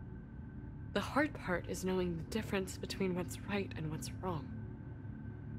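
A young woman answers softly and sadly, close by.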